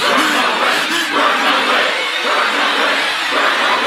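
A man laughs wildly.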